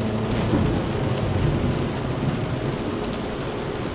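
Waves lap and splash against a ship's hull.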